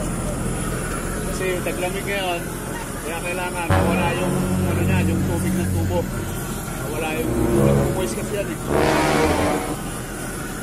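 A man talks close by with animation.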